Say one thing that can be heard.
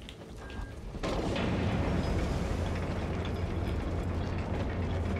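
Heavy armoured footsteps thud on a metal floor.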